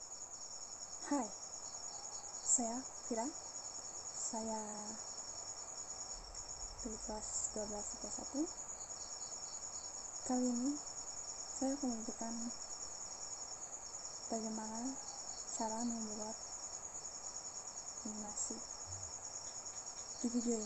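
A young woman speaks calmly and slowly close to the microphone, with pauses.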